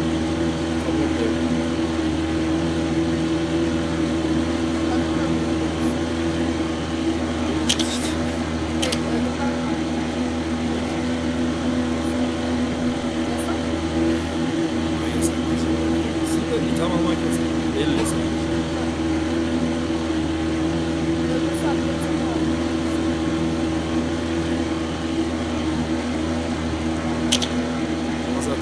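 A motorboat engine drones steadily as the boat speeds across water.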